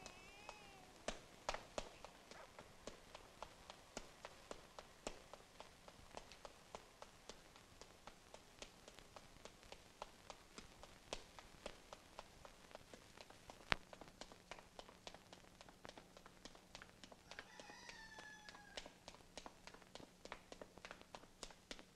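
Quick footsteps run on a dirt road.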